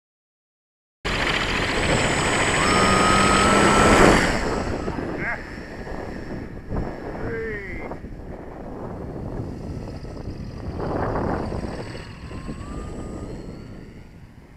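A small model aircraft's electric motor whines at high speed, then fades as the aircraft flies away.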